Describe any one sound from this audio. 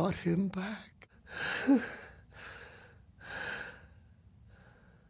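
An elderly man grunts and cries out in short, strained bursts, heard close up.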